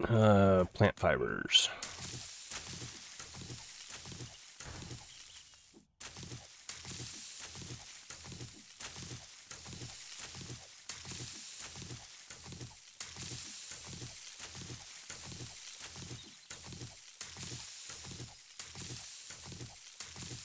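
A stone axe chops at plants with repeated swishing thuds.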